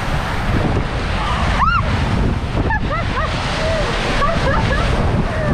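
Water rushes and splashes down a slide, loud and close.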